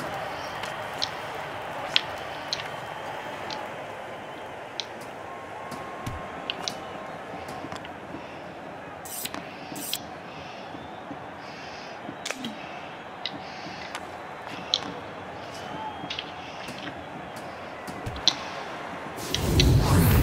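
Hockey sticks click sharply against a puck.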